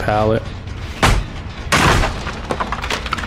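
A wooden pallet cracks and splinters as it is smashed.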